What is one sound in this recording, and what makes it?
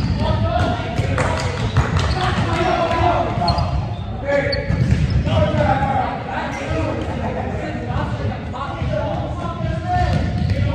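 A volleyball thuds off hands.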